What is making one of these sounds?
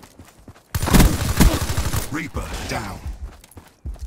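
A rifle fires bursts of shots in a video game.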